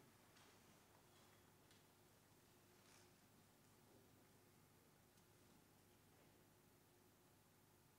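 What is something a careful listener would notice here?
A wind band plays softly in a large hall.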